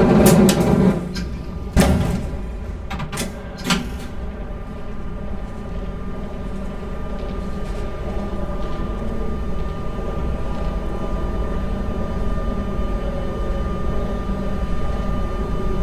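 A steady electric hum sounds inside a stopped train.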